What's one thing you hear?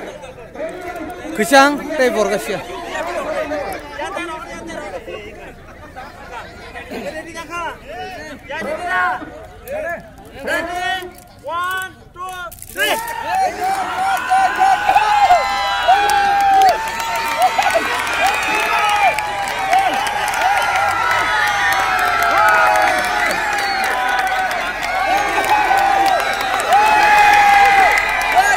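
A crowd of men and women cheers and shouts outdoors.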